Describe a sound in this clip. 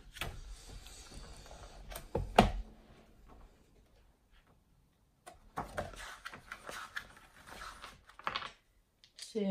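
Book pages flip and rustle.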